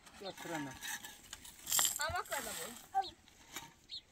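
A shovel scrapes and digs into dry soil.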